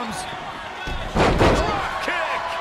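A heavy thud sounds as a body slams onto the ring mat.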